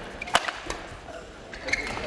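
A racket strikes a shuttlecock in a large echoing hall.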